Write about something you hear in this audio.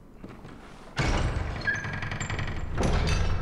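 Heavy wooden doors creak and rumble open.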